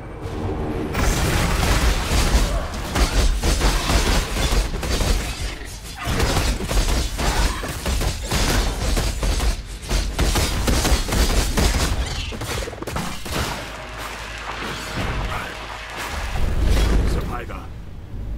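Magic spells crackle and blast in a video game.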